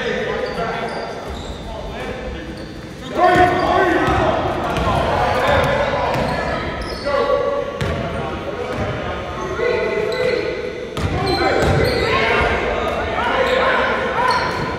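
Spectators shout and cheer in a large echoing hall.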